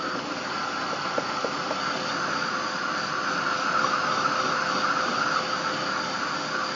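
A hair dryer blows steadily close by.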